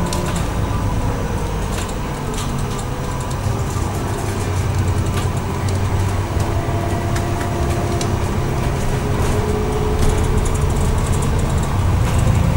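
Loose fittings rattle and click inside a moving bus.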